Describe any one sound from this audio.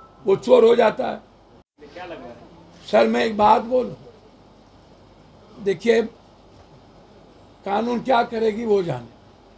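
An elderly man speaks forcefully into microphones nearby, in bursts with pauses.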